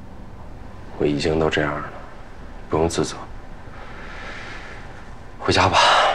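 A young man speaks softly and sadly, close by.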